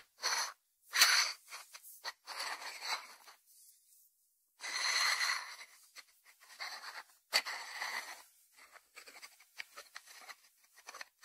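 Fingers rub and turn a lidded ceramic dish on a wooden board.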